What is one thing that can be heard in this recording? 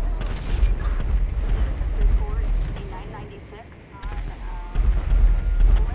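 A giant creature rumbles with deep, heavy booms.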